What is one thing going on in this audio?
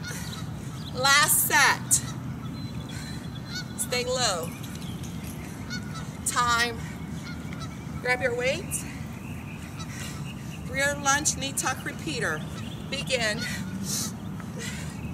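A young woman calls out exercise cues energetically into a microphone.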